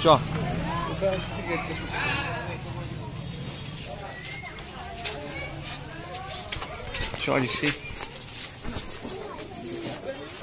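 Children and adults talk and call out close by, outdoors.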